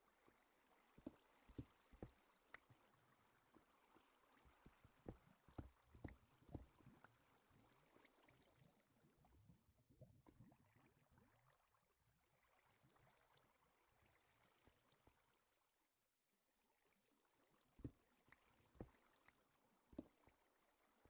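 Blocks land with soft, dull thuds, one after another.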